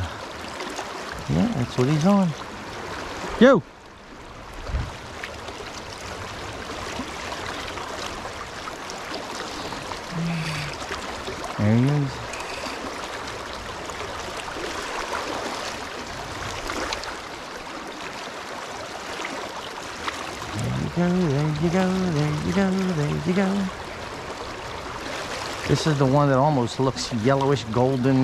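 A river flows and ripples steadily.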